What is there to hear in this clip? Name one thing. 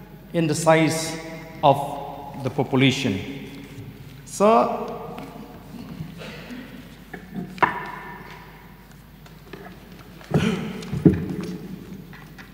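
A man speaks into a microphone in a measured voice, with pauses.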